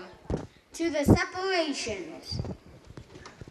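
A young boy speaks briefly into a microphone.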